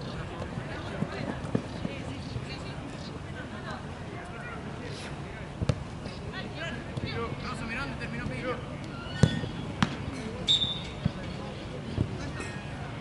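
A football thuds as it is kicked.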